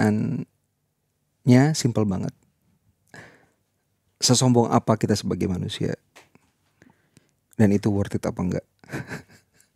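A man speaks into a microphone in a conversational tone.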